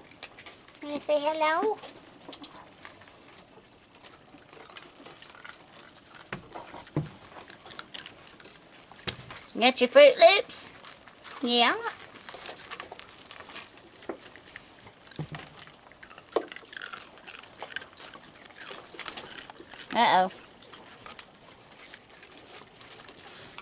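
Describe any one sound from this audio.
A raccoon crunches and munches on dry cereal close by.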